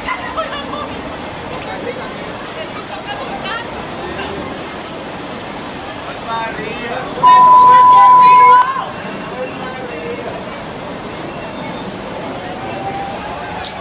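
Young men and women scream and shout on a spinning ride.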